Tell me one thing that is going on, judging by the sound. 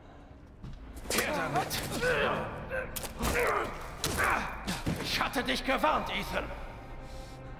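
A man speaks close by in a low, strained voice.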